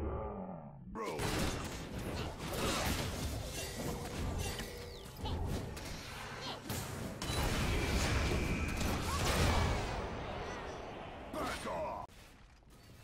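Video game combat effects clash and crackle in quick bursts.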